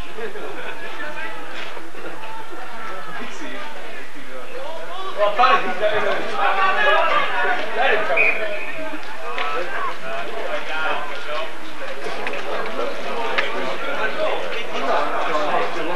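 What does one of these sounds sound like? Spectators close by talk and call out outdoors.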